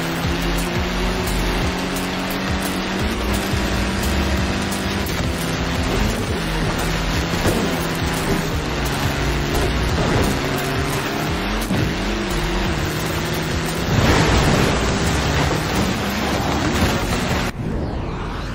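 A rally car engine roars and revs at high speed.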